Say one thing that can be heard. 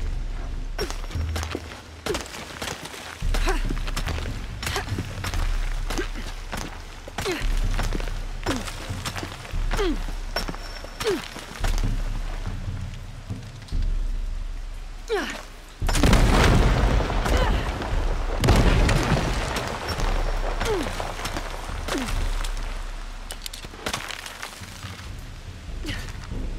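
Waterfalls rush and splash steadily nearby.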